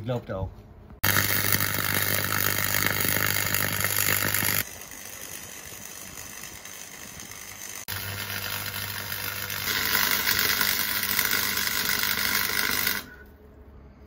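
An arc welder crackles and hisses loudly.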